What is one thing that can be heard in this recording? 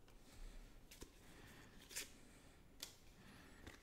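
Playing cards tap and click as they are flicked.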